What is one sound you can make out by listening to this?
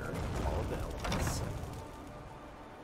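A heavy wooden door creaks open and thuds.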